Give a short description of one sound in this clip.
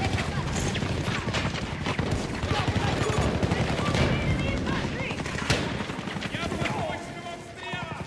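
Gunfire and explosions boom loudly.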